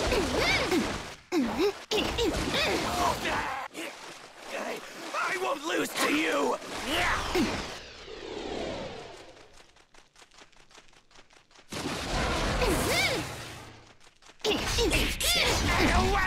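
Heavy blows land with loud thuds and crashes.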